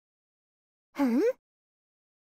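A girl hums a short reply.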